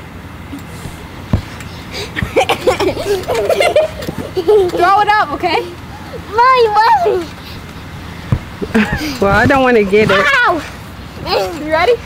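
A trampoline mat thumps and creaks as children bounce and land.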